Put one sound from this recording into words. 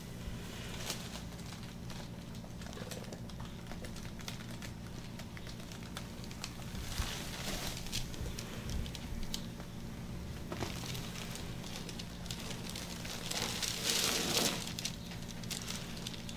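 Gloved hands rub and squish oily skin in a massage.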